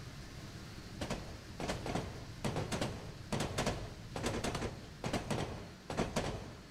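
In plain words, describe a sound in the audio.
Train wheels clatter over rail joints as carriages pass close by.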